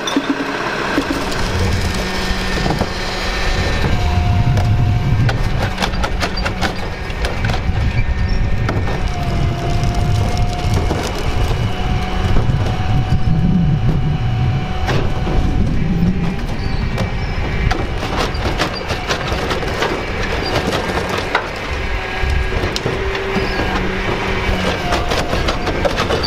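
A garbage truck engine rumbles and idles nearby.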